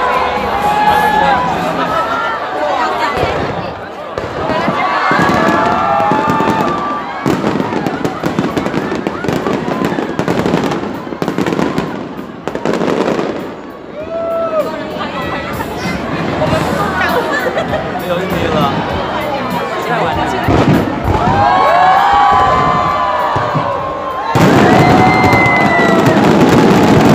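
Fireworks whistle as they shoot upward.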